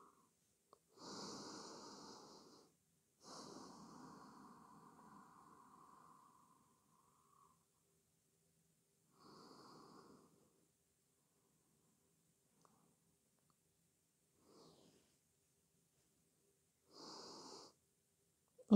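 A woman breathes slowly and deeply.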